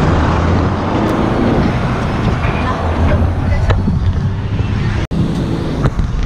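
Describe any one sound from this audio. A car passes close by.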